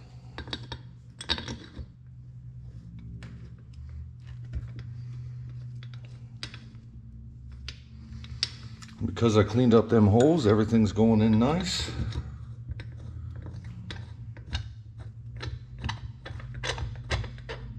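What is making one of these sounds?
A wrench ratchets as bolts are tightened.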